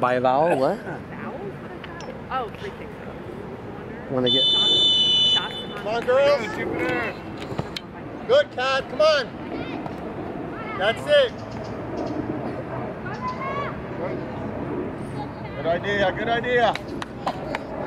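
Men and women shout encouragement from a distance outdoors.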